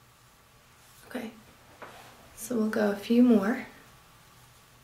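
A young woman speaks briefly and calmly, close by.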